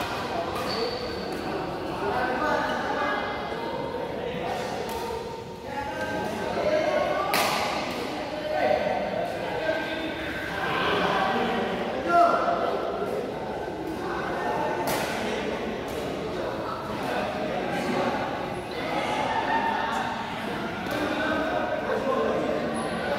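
Rackets smack a shuttlecock back and forth in quick rallies.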